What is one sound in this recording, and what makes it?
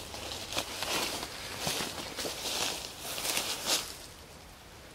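Footsteps brush and rustle through leafy undergrowth.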